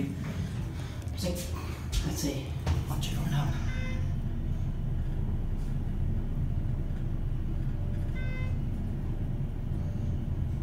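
An elevator hums steadily as it rides upward.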